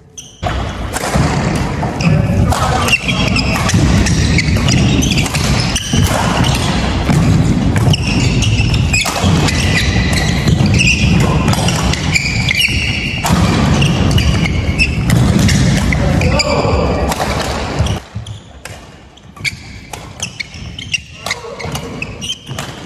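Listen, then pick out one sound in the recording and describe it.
A shuttlecock is struck back and forth with rackets in a large echoing hall.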